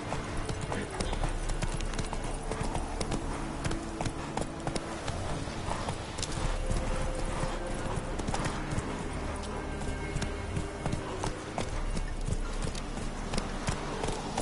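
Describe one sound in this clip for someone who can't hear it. Horse hooves thud steadily on a dirt path.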